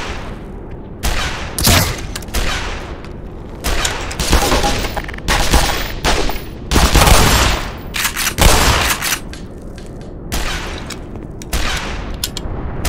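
Rifle shots crack and echo sharply.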